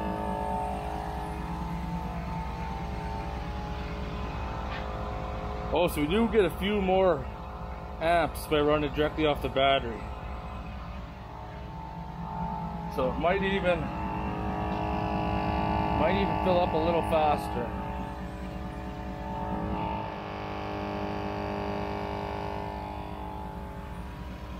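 An engine idles with a steady hum.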